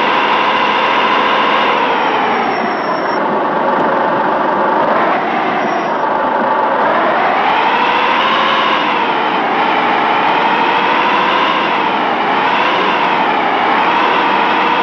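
A truck engine hums steadily, its pitch rising and falling as it speeds up and slows down.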